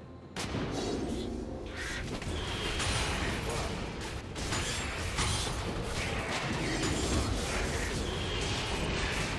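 Fiery magic blasts whoosh and crackle.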